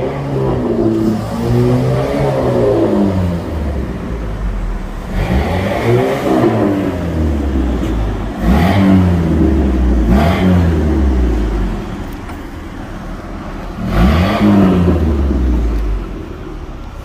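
A sports car engine rumbles close by and revs up loudly again and again.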